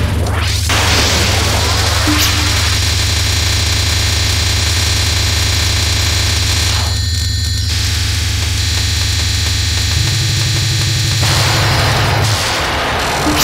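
Rapid electronic shooting sounds patter and crackle.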